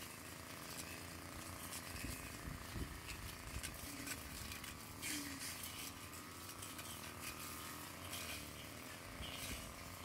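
Tall grass and leaves rustle and swish as someone walks through them.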